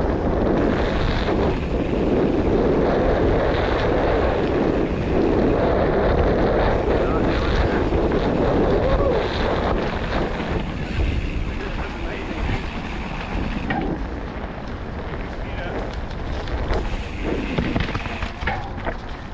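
Bike tyres crunch and rattle over dirt and leaves.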